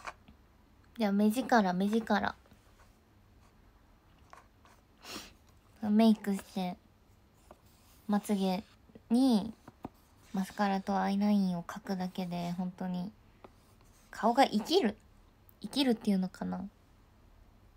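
A young woman speaks softly and playfully, close to a microphone, in short bursts.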